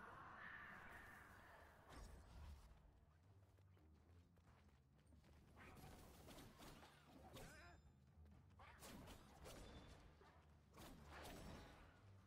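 Sword blades swish and strike in quick slashes.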